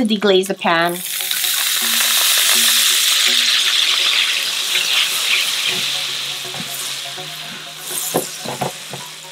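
Liquid pours into a hot pan and hisses loudly.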